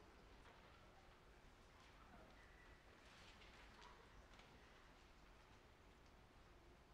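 An orchestra plays softly in a large hall.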